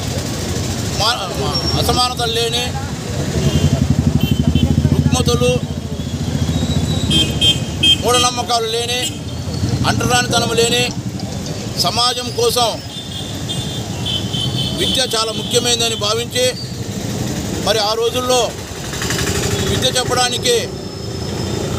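A man speaks loudly and with animation close to a microphone, outdoors.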